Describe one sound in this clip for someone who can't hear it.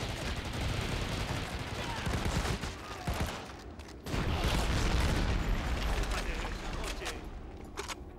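Gunfire rattles loudly in rapid bursts.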